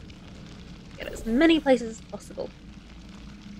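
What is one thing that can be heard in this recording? A woman speaks briefly with animation into a close microphone.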